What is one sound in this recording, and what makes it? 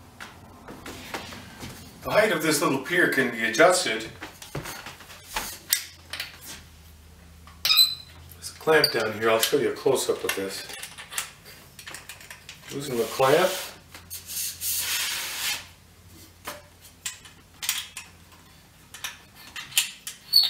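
Metal parts of a telescope mount click and rattle as they are adjusted.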